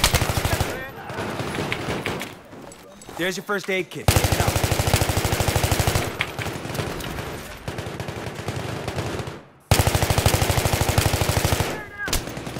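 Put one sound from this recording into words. A rifle fires in rapid bursts, close by.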